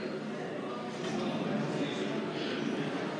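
Elevator doors slide open with a low rumble.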